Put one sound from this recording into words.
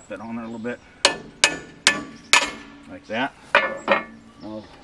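Metal clanks sharply as a wrench knocks against a steel bracket.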